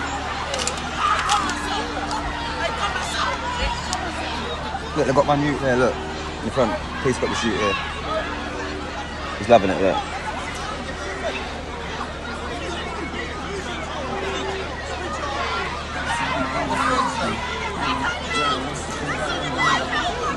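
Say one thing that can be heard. A crowd of young men and women shouts and talks outdoors nearby.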